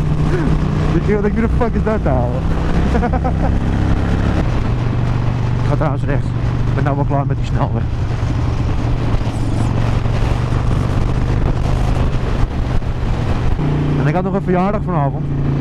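A motorcycle engine rumbles steadily at speed.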